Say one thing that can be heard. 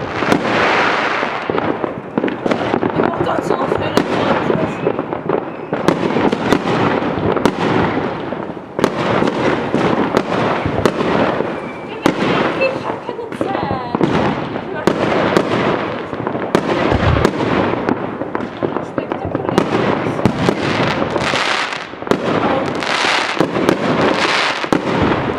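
Fireworks bang and boom in the sky, one after another.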